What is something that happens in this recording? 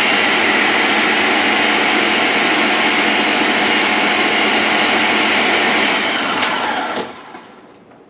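A blender whirs loudly and steadily, then winds down.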